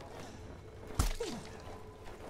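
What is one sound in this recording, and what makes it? A sword strikes a body with a sharp thud.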